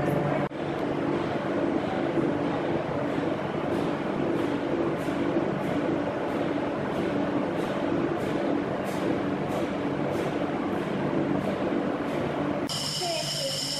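Machinery hums steadily.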